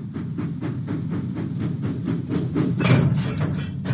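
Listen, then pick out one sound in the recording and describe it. A steam engine chuffs steadily.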